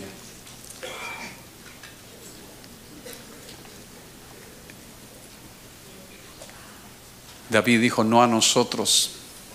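A middle-aged man speaks slowly into a microphone, with long pauses, heard through a loudspeaker.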